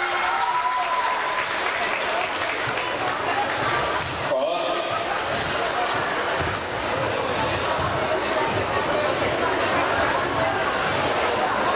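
Dancers' shoes tap and stamp on a wooden floor.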